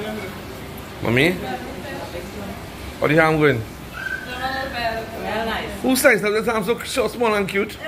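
An elderly woman talks and laughs close by.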